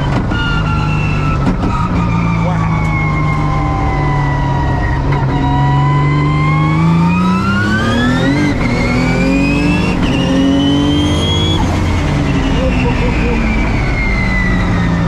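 A race car engine roars loudly, revving up and down through the gears.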